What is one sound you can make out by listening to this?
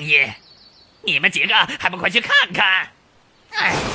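A man speaks with animation, close by.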